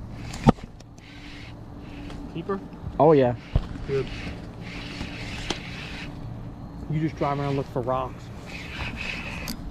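A spinning reel is cranked, winding in fishing line.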